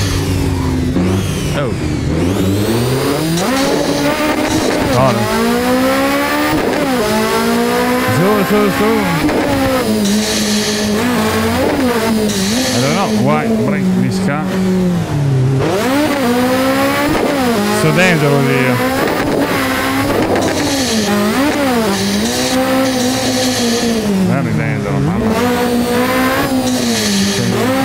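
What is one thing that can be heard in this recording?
A racing car engine revs up and drops in pitch as it shifts gears again and again.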